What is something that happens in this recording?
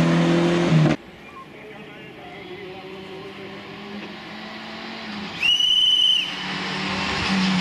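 A car engine approaches from a distance, growing steadily louder.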